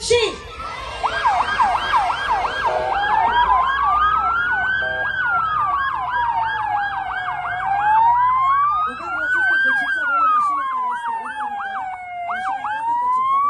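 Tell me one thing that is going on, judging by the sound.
Police sirens yelp rapidly as vehicles approach.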